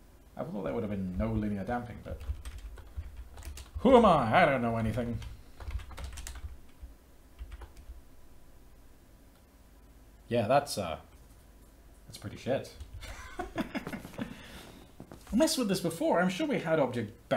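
Keys clatter on a computer keyboard.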